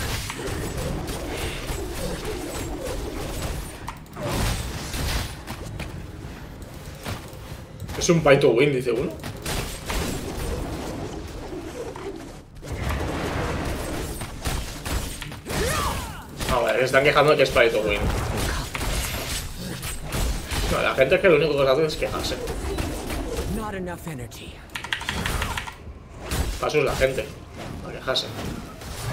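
Video game combat sounds of blows and spells play.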